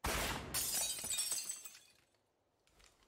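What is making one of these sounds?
Stone crumbles and crashes down with a loud rumble.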